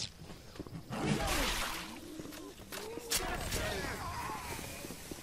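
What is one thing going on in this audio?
A sword slashes and thuds into flesh.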